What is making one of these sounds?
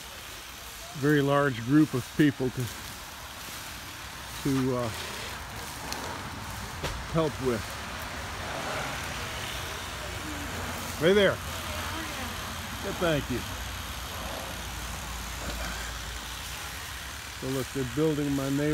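Rakes scrape through dry leaves and brush.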